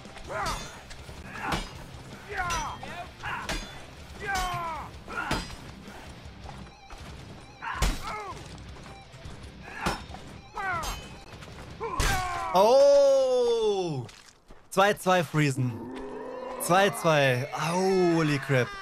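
A man talks with animation into a close microphone, then shouts excitedly.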